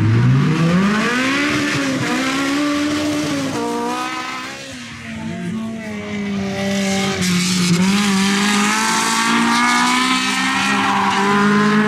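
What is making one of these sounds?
A small car's engine revs hard as the car races past on a track.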